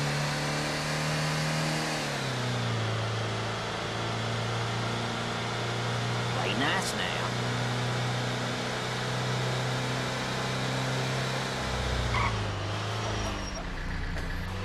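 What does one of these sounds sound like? A car engine hums steadily and shifts in pitch as a vehicle drives along.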